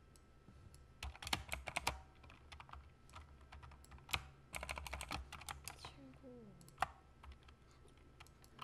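Fingers type quickly on a clicky keyboard, close by.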